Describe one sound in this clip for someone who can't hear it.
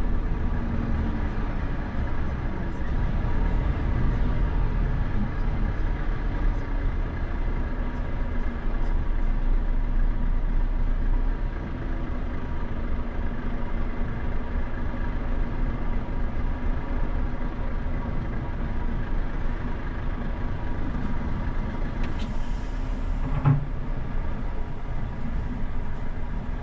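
A vehicle's engine hums steadily as it drives slowly along a road.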